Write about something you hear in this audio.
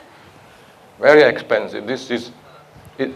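A man lectures through a microphone in a large room.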